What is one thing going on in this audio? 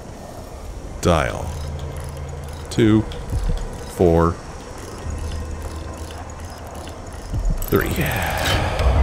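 Metal combination dials whir and click as they turn.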